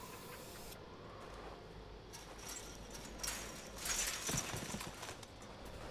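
A smoke canister hisses steadily.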